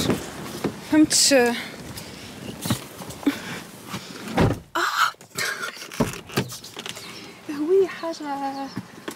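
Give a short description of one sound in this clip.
A young woman talks playfully close by.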